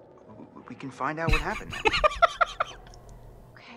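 A young man laughs loudly into a microphone.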